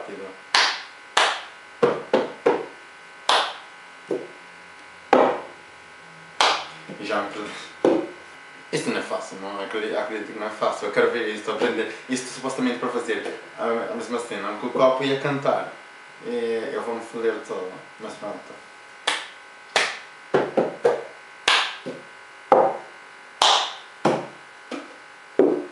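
A young man claps his hands sharply.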